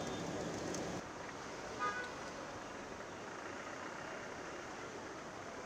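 Flags flap in the wind.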